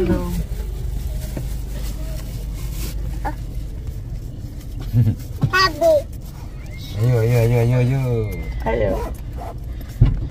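A small child babbles close by.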